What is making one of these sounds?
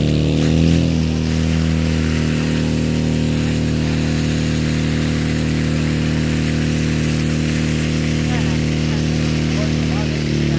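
Water hoses spray and hiss outdoors.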